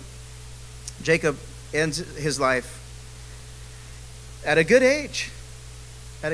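A man speaks calmly into a microphone, heard over loudspeakers, with pauses between phrases.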